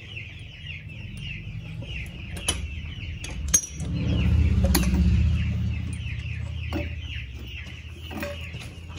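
A hydraulic jack creaks rhythmically as its handle is pumped.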